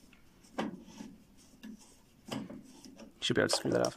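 Small screws click against metal.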